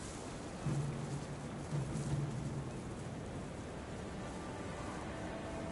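Wind blows steadily through tall grass.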